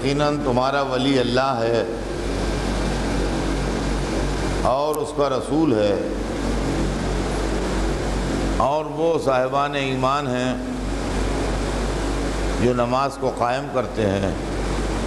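An elderly man speaks slowly and earnestly into a microphone, in short phrases with pauses.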